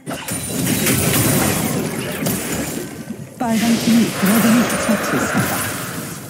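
Magic spell effects whoosh and crackle.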